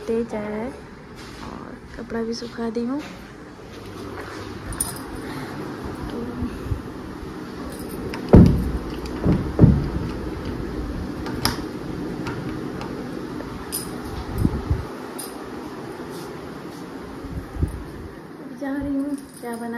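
A young woman speaks calmly, close to a phone microphone.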